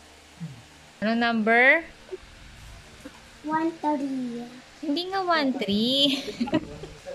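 A young girl speaks in a high, lively voice close by.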